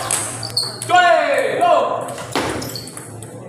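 A ping-pong ball clicks back and forth on paddles and a table.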